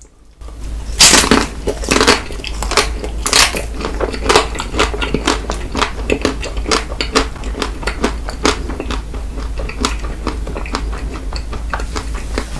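A young man chews wetly and smacks his lips close to a microphone.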